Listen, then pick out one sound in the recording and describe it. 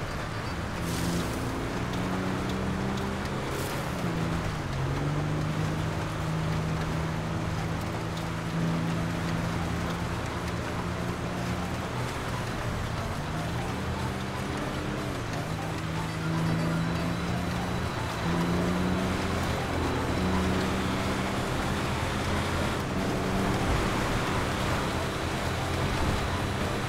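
A truck engine drones steadily, rising and falling in pitch as it shifts gears.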